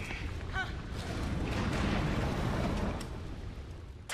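A fire roars and crackles close by.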